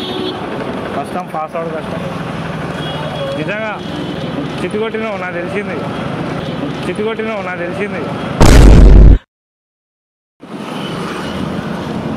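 Motor scooters ride past in street traffic.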